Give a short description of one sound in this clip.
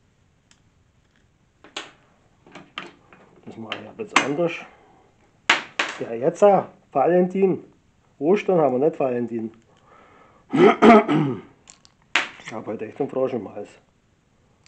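Small metal parts click in a man's hands.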